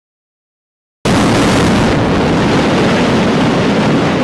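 Explosive charges blast with a loud bang.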